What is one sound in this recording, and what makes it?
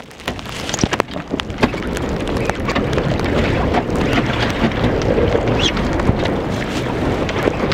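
Wind blusters loudly outdoors.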